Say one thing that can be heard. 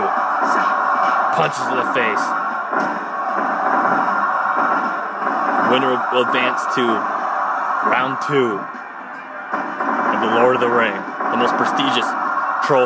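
Heavy thuds of bodies slamming onto a mat sound from a television speaker.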